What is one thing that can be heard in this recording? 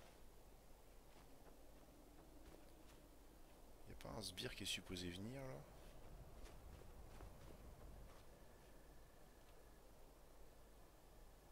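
Footsteps crunch through snow at a steady walking pace.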